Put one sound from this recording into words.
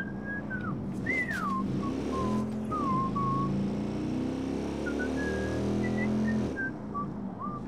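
A motorcycle engine revs loudly, then cuts out.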